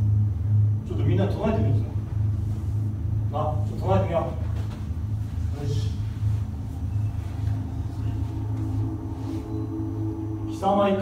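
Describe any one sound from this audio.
A young man speaks briefly.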